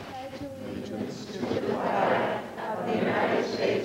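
A crowd of people recites together in unison.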